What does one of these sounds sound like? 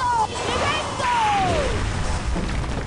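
A magical blast bursts with a rushing roar.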